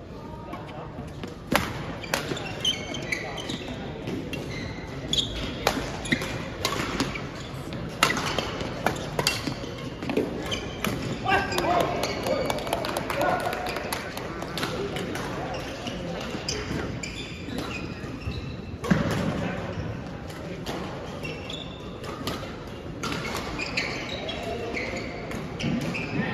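Sneakers squeak on a hard floor in a large echoing hall.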